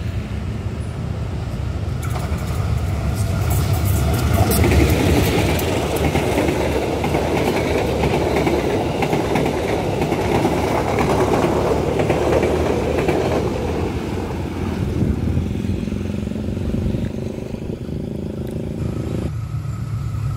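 A diesel locomotive engine rumbles and then fades into the distance.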